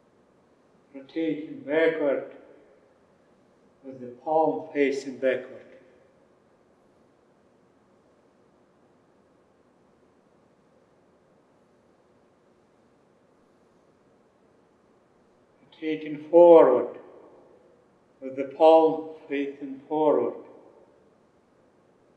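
A man calmly gives spoken instructions in short phrases, with long pauses between them.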